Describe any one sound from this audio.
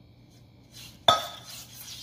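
A spatula scrapes across a metal pan.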